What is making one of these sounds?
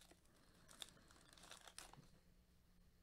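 A wrapper crinkles as it is torn open.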